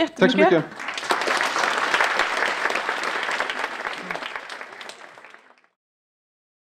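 An audience applauds and then fades out.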